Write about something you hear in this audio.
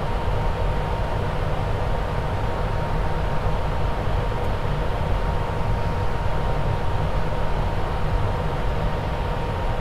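A jet engine roars steadily with a low rumble and a constant whine.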